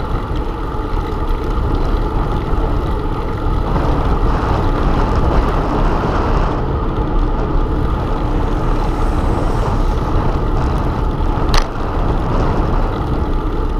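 Wind rushes and buffets loudly, outdoors.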